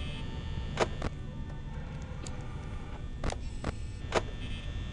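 Static hisses and crackles.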